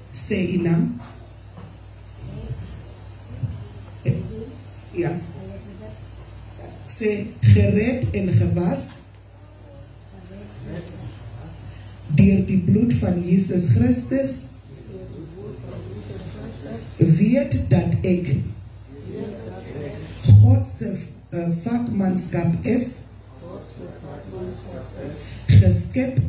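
A man speaks through a microphone and loudspeakers.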